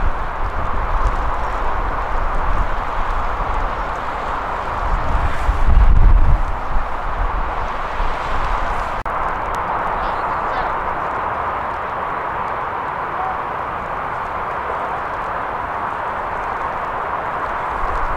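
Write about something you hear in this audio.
Wind blows across an open field, gusting strongly for a moment.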